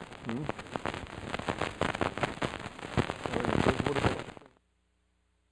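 A young man speaks into a handheld microphone.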